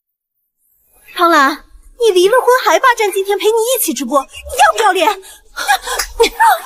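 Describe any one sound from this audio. A young woman speaks angrily and loudly.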